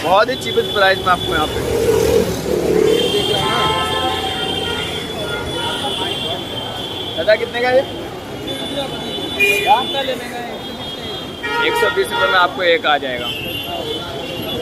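A busy crowd murmurs outdoors around the speaker.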